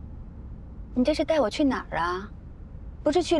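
A young woman asks a question quietly inside a car.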